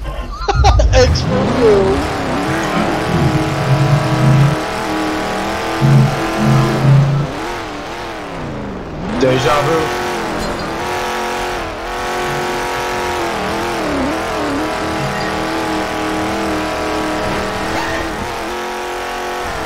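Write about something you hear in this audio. A car engine roars, revving up and dropping between gear changes.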